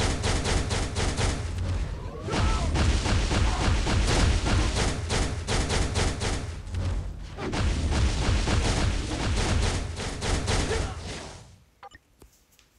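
Energy blasts crackle and boom in a game battle.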